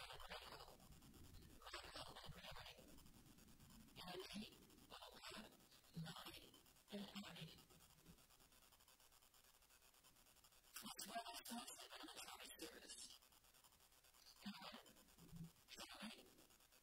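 An elderly woman reads out calmly through a microphone, in a slightly echoing room.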